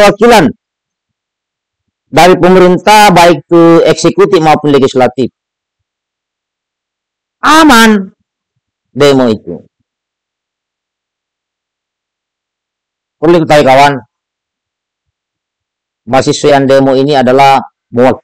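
A middle-aged man speaks with animation into a close microphone, in bursts with long pauses.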